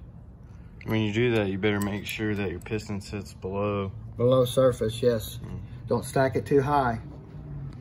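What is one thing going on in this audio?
Metal parts clink as they are handled.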